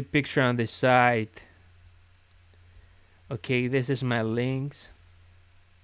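A young man speaks with animation into a nearby microphone.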